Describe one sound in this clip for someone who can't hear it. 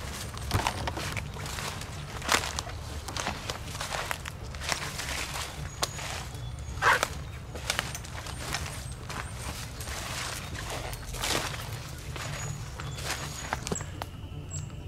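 Footsteps crunch through dry leaves.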